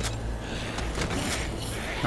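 A blunt weapon thuds against a body.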